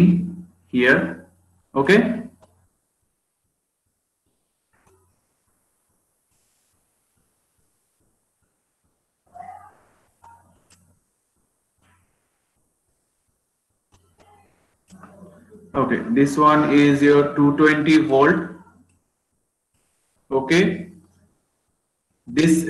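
A man explains calmly, heard through an online call.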